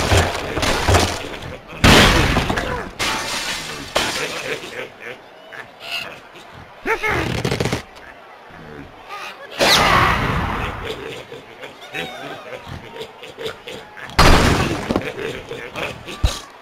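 Wooden and glass blocks crash and shatter as they topple.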